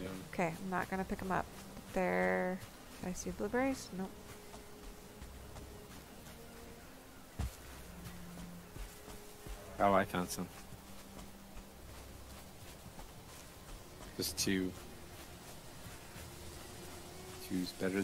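Footsteps tread softly on forest ground.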